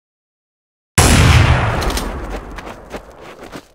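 A rifle shot cracks loudly and echoes away.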